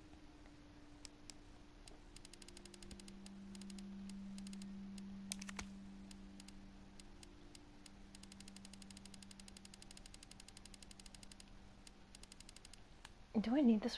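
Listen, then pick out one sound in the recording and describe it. Short menu clicks tick rapidly in a game.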